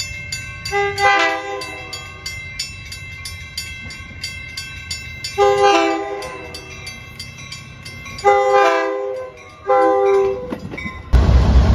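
A train horn blows loudly several times.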